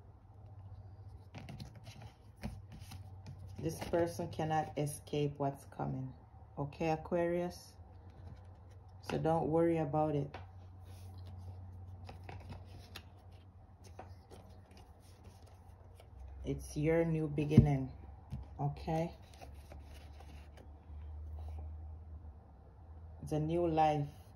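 Playing cards slide and tap softly as they are laid down and fanned.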